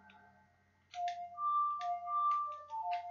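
An ocarina plays a short tune of clear notes.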